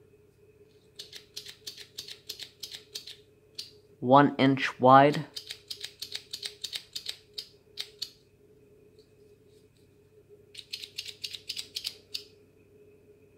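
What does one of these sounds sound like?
Small scissors snip thread with quick, light clicks.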